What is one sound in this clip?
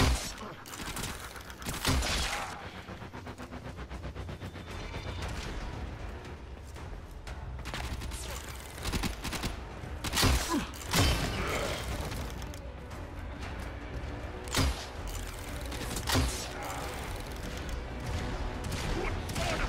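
Gunshots and sharp impacts from a game ring out now and then.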